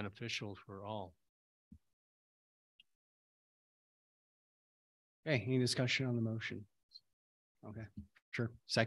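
A man speaks calmly into a microphone, heard through an online call, with pauses.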